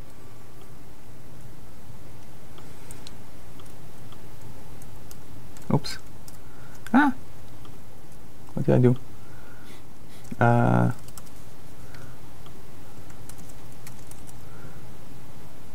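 Keys clatter on a laptop keyboard.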